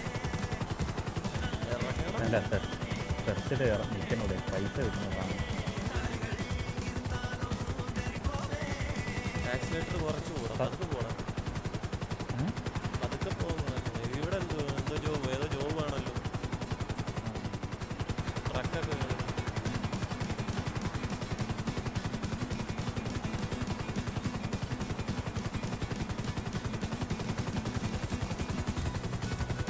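A helicopter's engine whines steadily.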